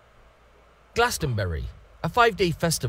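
A young man raps energetically into a microphone.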